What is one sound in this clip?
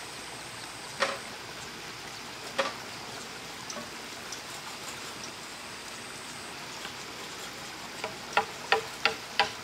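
Wood is tapped and knocked outdoors.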